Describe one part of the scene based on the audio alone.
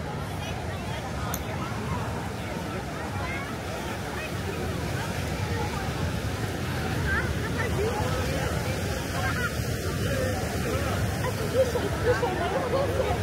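Waves wash onto the shore in the distance.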